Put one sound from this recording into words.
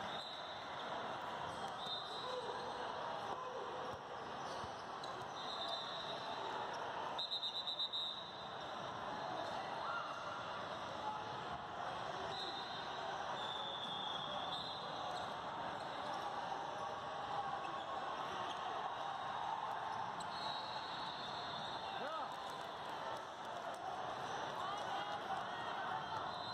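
A crowd of spectators murmurs and calls out in a large echoing hall.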